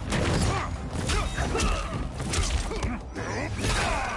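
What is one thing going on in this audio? A body slams onto the ground with a heavy thud.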